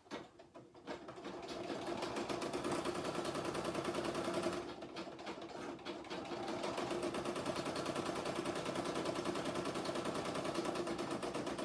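An embroidery machine whirs and clatters steadily as it stitches.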